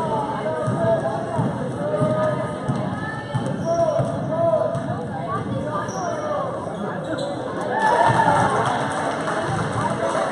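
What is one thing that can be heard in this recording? Basketball players' sneakers squeak on the court.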